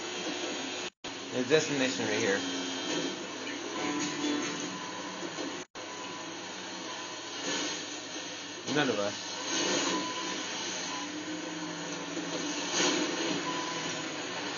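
A truck engine idles through a television speaker.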